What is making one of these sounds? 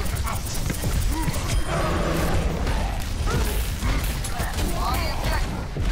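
An energy weapon fires with a crackling electric buzz.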